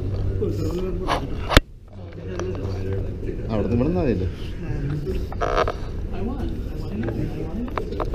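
A man speaks close by, a little muffled.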